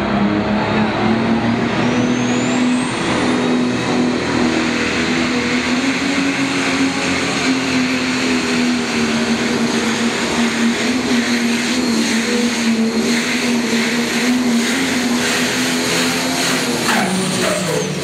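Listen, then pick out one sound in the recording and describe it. A tractor's engine roars loudly and steadily, echoing in a large hall.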